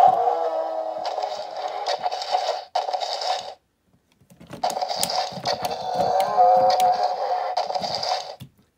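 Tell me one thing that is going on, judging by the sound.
A toy dinosaur lets out electronic roars through a small speaker.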